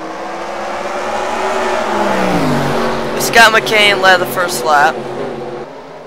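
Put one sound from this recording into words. Racing car engines roar loudly, their pitch dropping as they change gear.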